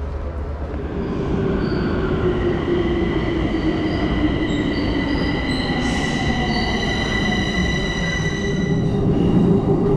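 A metro train rolls into a station with squealing brakes.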